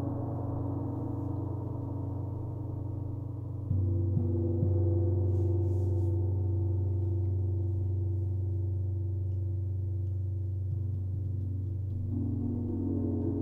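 Metal singing bowls ring with sustained tones.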